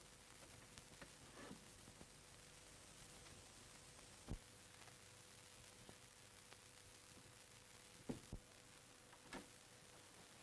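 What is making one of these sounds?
A door latch clicks and rattles.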